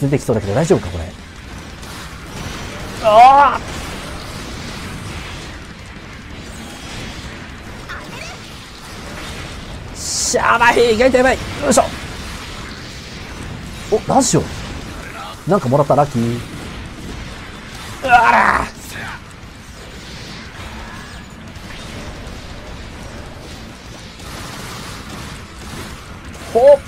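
Laser weapons fire and zap in quick bursts.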